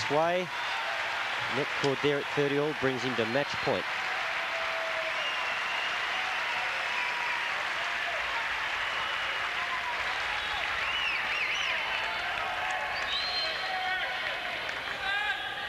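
A large crowd murmurs steadily in a big open arena.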